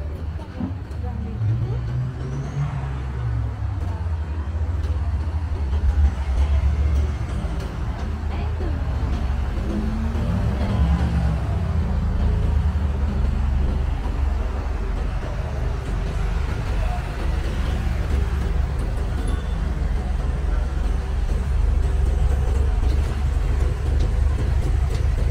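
Footsteps tap on a pavement.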